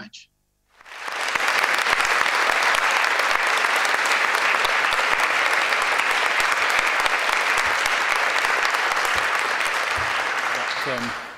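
A large audience applauds steadily in a big echoing hall.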